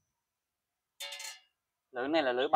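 A metal saw blade clanks down onto a tiled floor.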